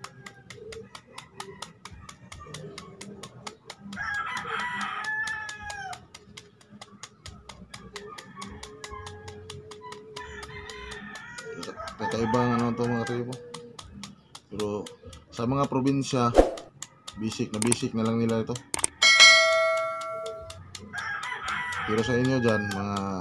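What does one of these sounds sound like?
A knife scrapes and shaves a root.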